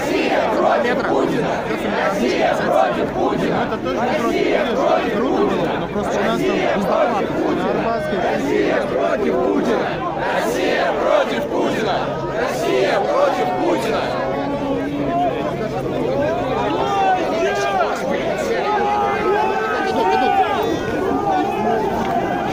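Young men and women talk close by with animation.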